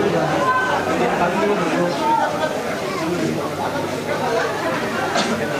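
A large outdoor crowd chatters and calls out continuously.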